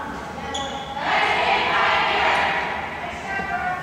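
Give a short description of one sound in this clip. A group of girls cheer and shout together in a large echoing gym.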